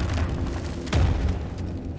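A lightsaber hums and swooshes.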